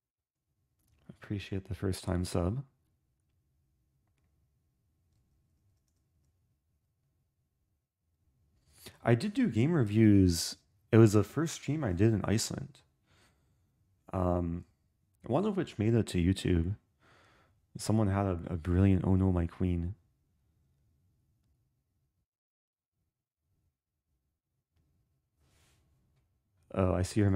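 A young man speaks calmly and closely into a microphone, in short bursts with pauses.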